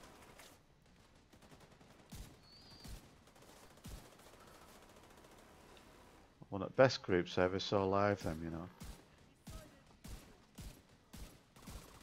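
Rifle shots crack one at a time.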